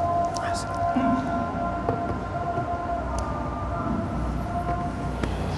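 A man chants slowly and steadily through a microphone.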